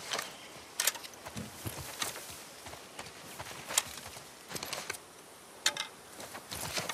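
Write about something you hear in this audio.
Footsteps rustle through tall grass and brush.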